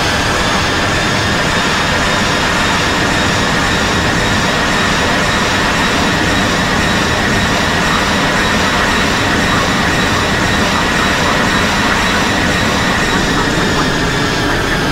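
Jet engines roar steadily as an airliner rolls along a runway.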